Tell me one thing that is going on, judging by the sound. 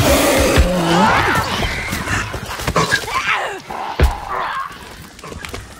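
An axe strikes with heavy thuds.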